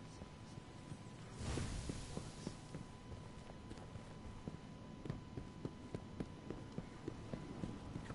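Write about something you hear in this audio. Footsteps of a game character patter quickly on hard ground.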